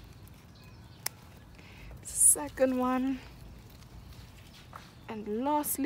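Garden scissors snip through a plant stem.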